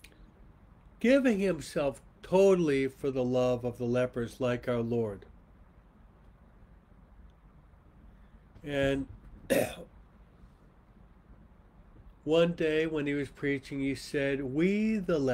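A middle-aged man speaks calmly and earnestly into a microphone, with pauses.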